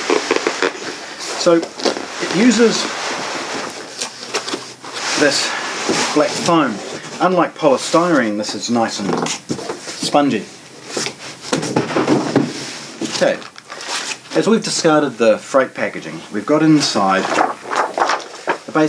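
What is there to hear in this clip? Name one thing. A man talks calmly and clearly into a microphone.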